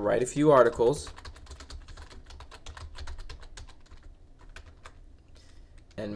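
Keys clatter on a computer keyboard as someone types.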